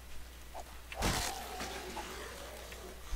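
A zombie snarls and growls close by.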